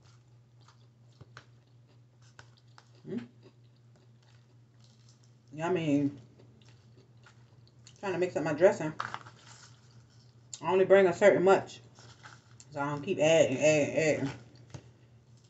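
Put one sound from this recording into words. A fork scrapes and clinks in a bowl of salad.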